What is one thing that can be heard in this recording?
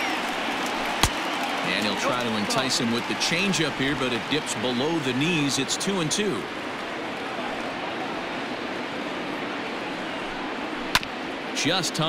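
A baseball pops into a catcher's mitt.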